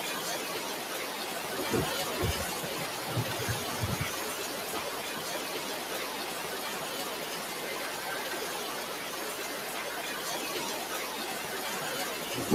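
Strong wind roars steadily outdoors.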